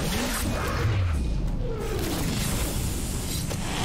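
Heavy blows thud as two fighters clash.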